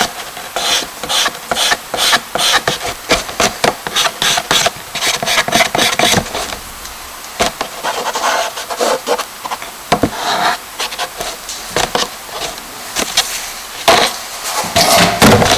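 Charcoal scratches and scrapes across paper in short strokes.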